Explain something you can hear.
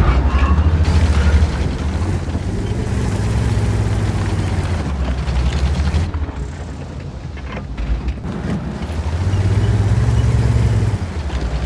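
A heavy tank engine rumbles deeply.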